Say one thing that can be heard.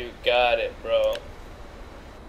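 A man speaks briefly into a headset microphone, with animation.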